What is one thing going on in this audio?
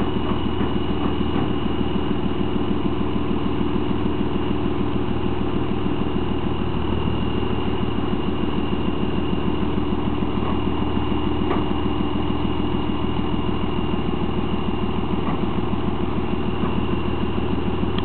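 A large diesel truck engine idles loudly and steadily close by.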